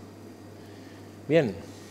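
A spatula scrapes through a thick purée.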